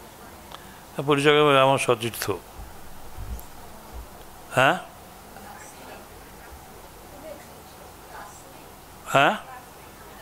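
An elderly man speaks calmly into a microphone, with long pauses.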